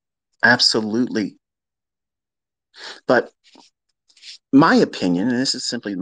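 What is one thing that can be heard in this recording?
A man speaks close to a microphone, in short bursts with pauses.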